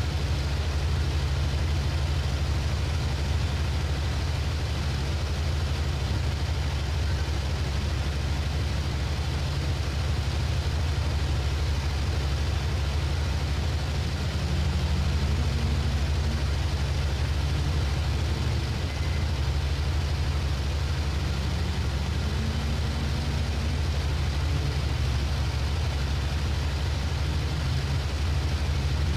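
Wind rushes past an aircraft canopy.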